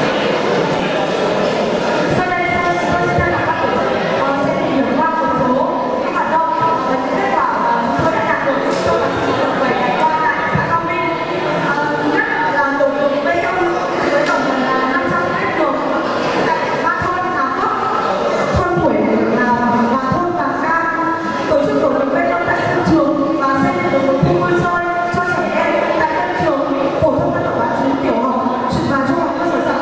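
A young woman speaks steadily into a microphone over a loudspeaker in a large room.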